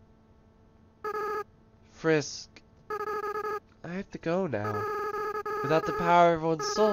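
Quick, even electronic beeps sound as game dialogue text types out.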